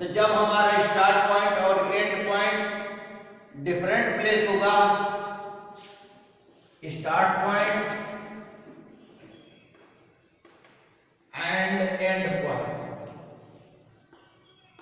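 A man speaks clearly and slowly through a small microphone in an echoing room.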